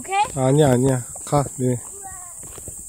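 A young girl speaks up close with animation.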